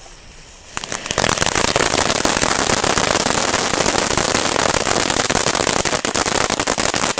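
A firework fountain roars and crackles loudly outdoors.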